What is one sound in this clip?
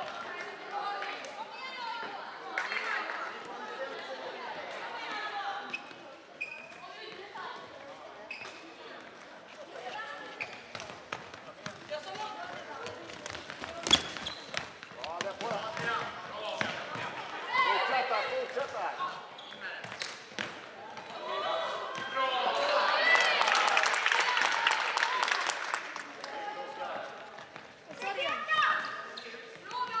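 Young players shout and call out in a large echoing hall.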